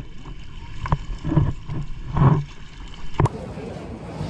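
Water splashes and slaps against a paddleboard.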